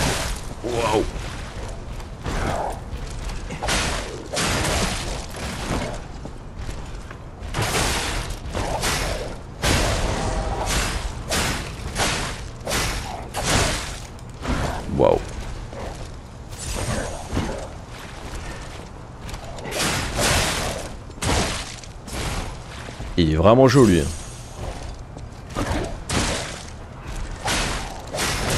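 Blades swing and clash in quick, repeated blows.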